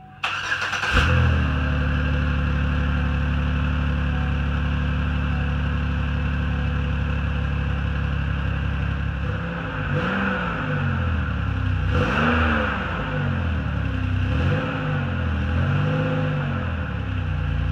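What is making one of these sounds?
A car engine idles with a deep, steady exhaust rumble.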